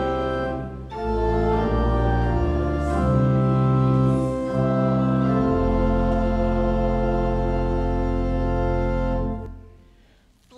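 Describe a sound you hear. A congregation sings a hymn together.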